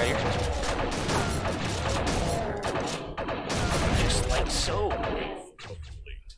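Monsters growl in a video game.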